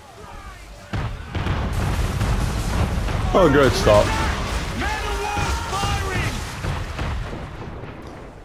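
Cannons boom and explosions rumble close by.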